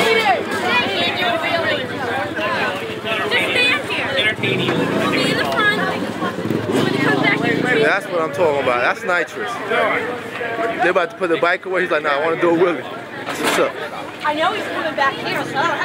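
A crowd of young men and women talk over one another close by, outdoors.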